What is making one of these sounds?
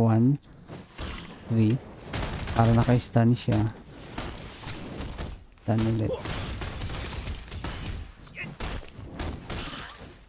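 Blades swing and strike in a fast fight.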